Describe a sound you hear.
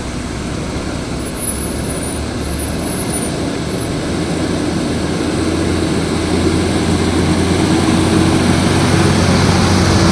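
A large truck's engine grows louder as it approaches, rumbling deeply.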